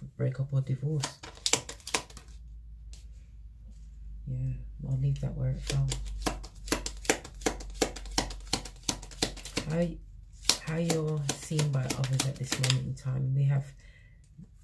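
Playing cards riffle and snap as they are shuffled.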